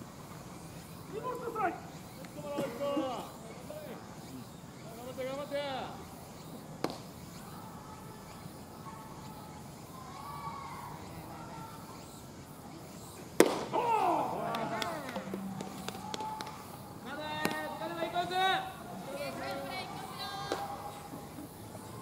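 Players shout and call out across an open field.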